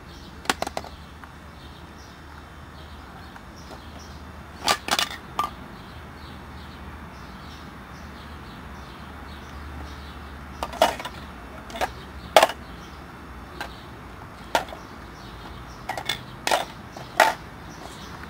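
Plastic toy rings clack and rattle together.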